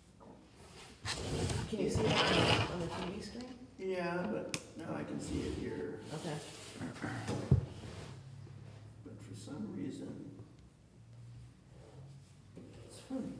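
A man speaks calmly, heard through a table microphone.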